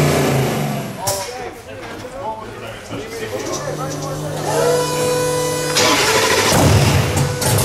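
A car engine idles with a rough, low rumble.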